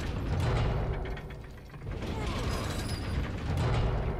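A heavy iron gate grinds and rattles as it rises.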